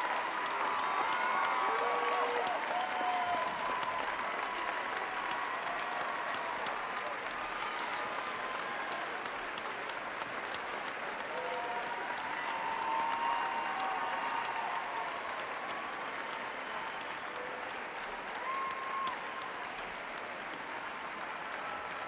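A large crowd applauds steadily in a big echoing hall.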